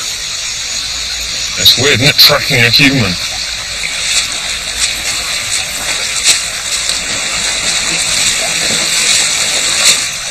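Water flows and splashes over rocks in a shallow stream.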